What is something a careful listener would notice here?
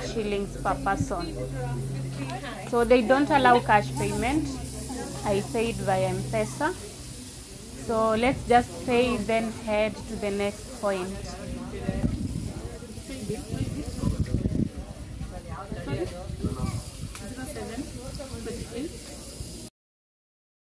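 A woman speaks calmly at close range.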